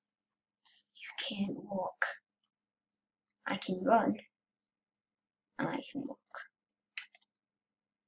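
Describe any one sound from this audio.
A young boy speaks quietly and haltingly into a microphone.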